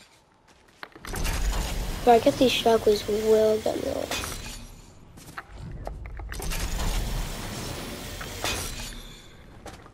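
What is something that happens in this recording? A zipline cable whirs and rattles as a rider slides along it.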